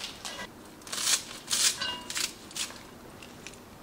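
Scissors snip through plant stems.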